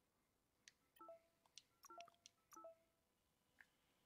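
Short electronic menu chimes beep as options are selected.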